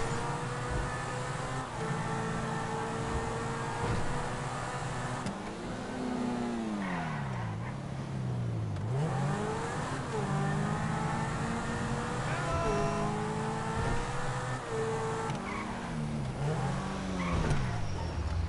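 A sports car engine roars steadily, its pitch rising and falling as the gears shift and the car speeds up and slows down.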